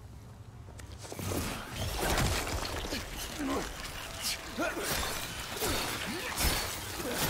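A creature snarls and thrashes in a close scuffle.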